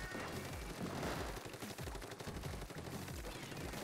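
Ink splatters in quick bursts as a game character shoots.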